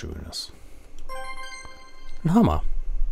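A chest opens with a bright chime.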